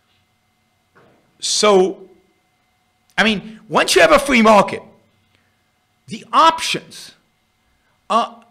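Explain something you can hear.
An older man speaks with animation into a close microphone.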